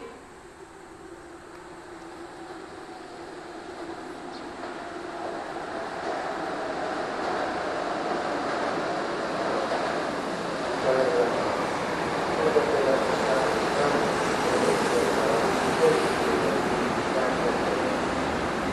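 A train rumbles along the tracks, growing louder as it approaches.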